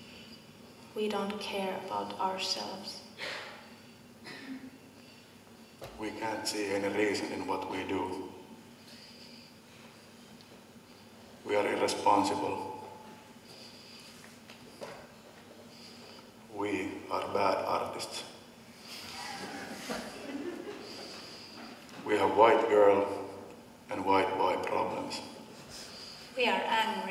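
A young man recites loudly with expressive pauses in an echoing hall.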